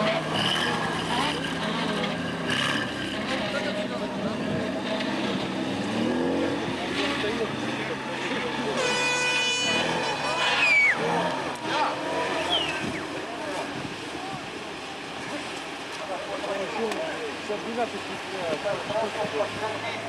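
Off-road vehicle engines rumble and rev.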